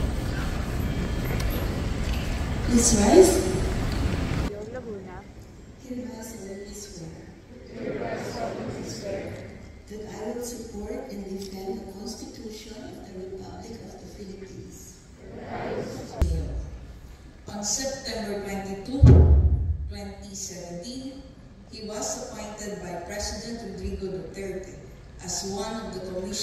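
An elderly woman speaks through a loudspeaker in a large echoing hall.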